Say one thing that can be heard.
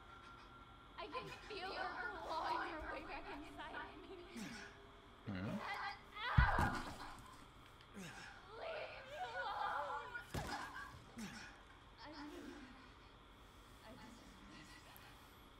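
A young woman speaks in a frantic, shaky voice.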